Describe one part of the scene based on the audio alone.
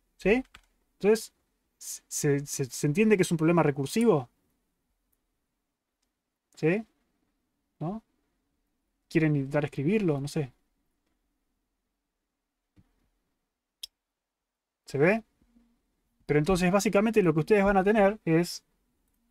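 A young man speaks with animation, close to a microphone, in short bursts with pauses.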